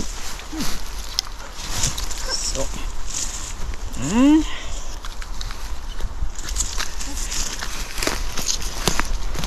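Footsteps rustle through low undergrowth.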